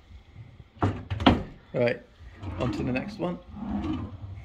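A wooden drawer knocks and slides open.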